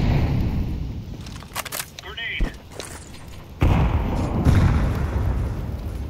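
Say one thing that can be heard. Flames roar and crackle nearby.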